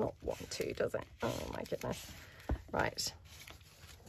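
Paper crinkles and rustles as it is crumpled by hand.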